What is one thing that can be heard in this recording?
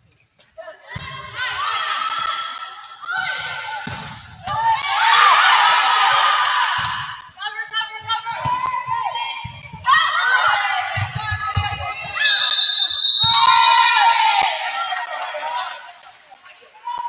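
A crowd of spectators and young women players shout and cheer.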